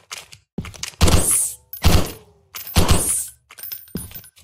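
A rifle fires loud shots that echo off rock walls.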